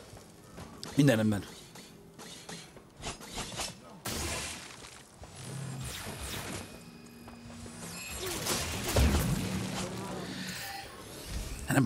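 Game weapons clash and strike in bursts.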